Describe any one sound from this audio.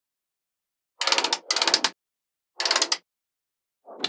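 Small magnetic balls rattle and click together as they are handled.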